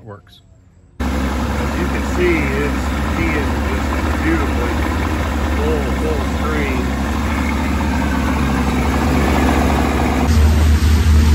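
An outboard motor runs with a loud steady drone.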